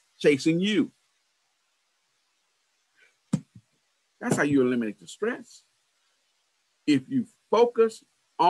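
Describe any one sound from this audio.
A man speaks calmly over an online call, in short phrases with pauses.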